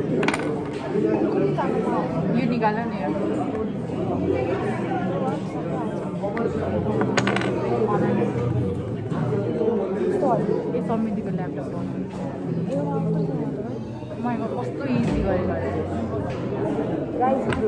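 Wooden blocks click and tap on a tower.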